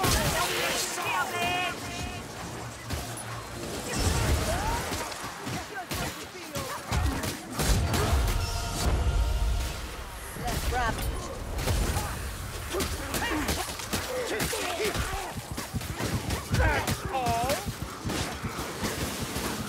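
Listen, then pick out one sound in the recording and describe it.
Monstrous creatures snarl and shriek.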